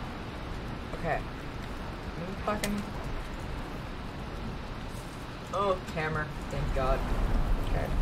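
A young woman talks animatedly into a close microphone.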